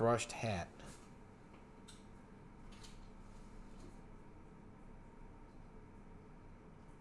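A stiff paper card is flipped over with a soft flick.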